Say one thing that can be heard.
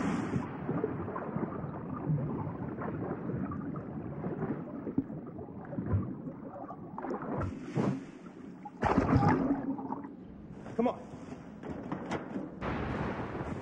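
Water churns and bubbles underwater.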